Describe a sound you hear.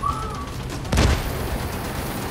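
An explosion booms with a deep thud.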